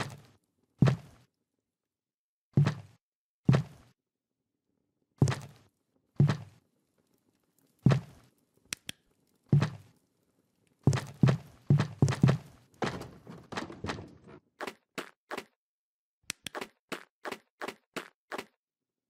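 Small footsteps thud on hollow wooden boards.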